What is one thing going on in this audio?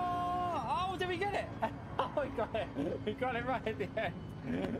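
A man laughs and shouts excitedly.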